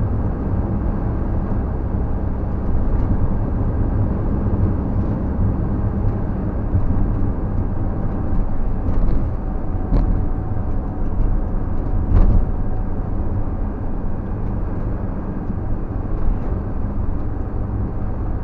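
A vehicle's engine hums steadily from inside the cab as it drives along.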